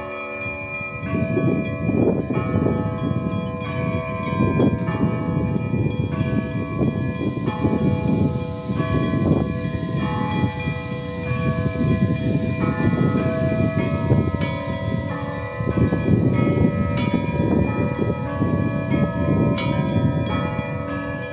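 Wind gusts outdoors against the microphone.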